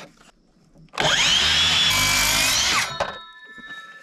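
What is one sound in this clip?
A circular saw whines as it cuts through wood.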